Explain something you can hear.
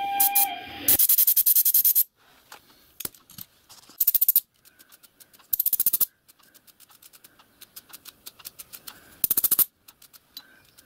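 Compressed air hisses from a nozzle in short bursts.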